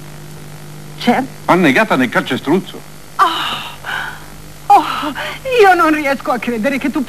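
An elderly woman speaks with animation nearby.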